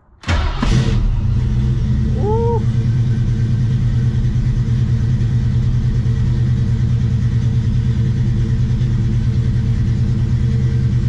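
A car engine idles with a steady, deep rumble.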